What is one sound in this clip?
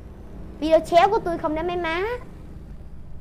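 A young boy speaks excitedly into a microphone close by.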